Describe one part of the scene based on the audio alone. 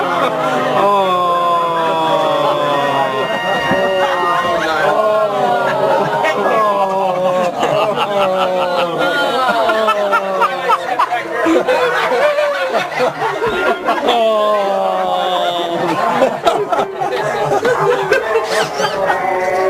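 Voices sing a song through a loudspeaker.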